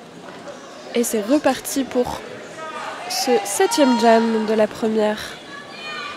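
Players and spectators shout and cheer loudly.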